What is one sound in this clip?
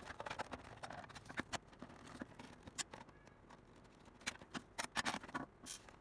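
A screwdriver scrapes and clicks against plastic.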